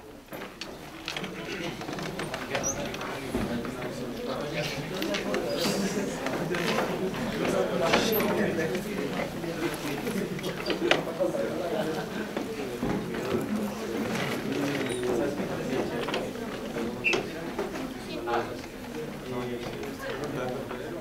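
Several young men and women chat in low voices close by, in a room with a slight echo.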